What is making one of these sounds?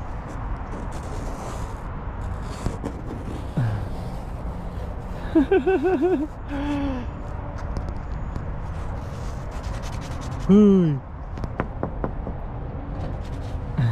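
A finger scrapes lightly across frost on a car roof.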